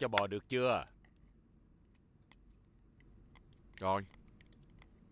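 A man speaks briefly in short phrases.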